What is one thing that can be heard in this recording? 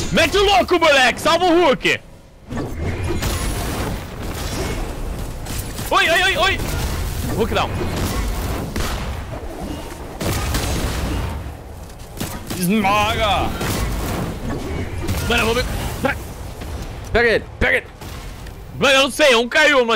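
A man talks animatedly and close into a microphone.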